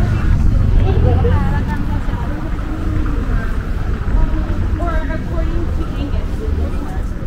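Women chat nearby on a street.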